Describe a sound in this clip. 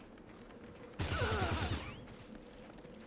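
A short burst of gunfire rattles.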